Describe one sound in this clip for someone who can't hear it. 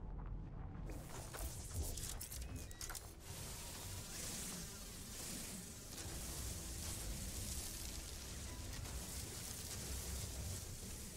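A mining beam hums steadily as it cuts into crystals.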